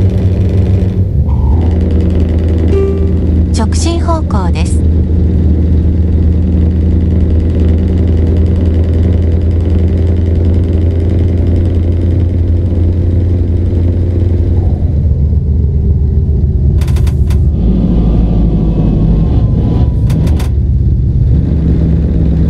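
A truck engine shifts gears, its pitch dropping and rising again.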